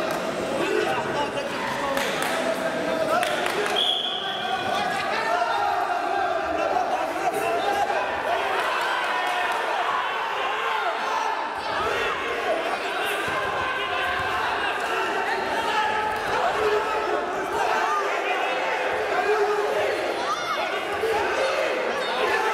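Wrestlers' feet thud and scuff on a mat.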